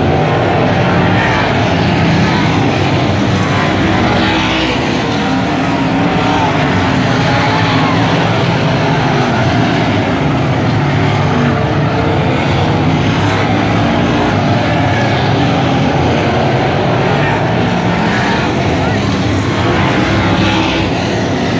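Many race car engines roar loudly and continuously around a dirt track.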